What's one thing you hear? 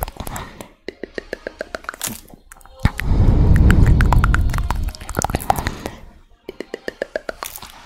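Long fingernails tap and click rapidly close to a microphone.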